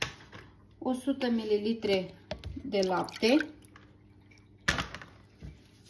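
Milk pours and splashes into a glass bowl.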